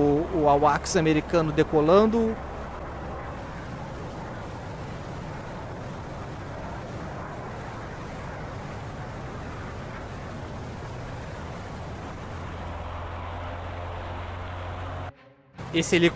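A propeller aircraft engine drones steadily.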